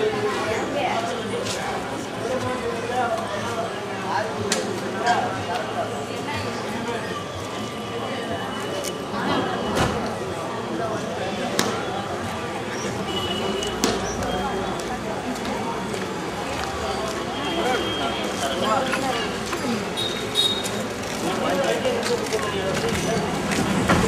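A busy street crowd murmurs and chatters all around, outdoors.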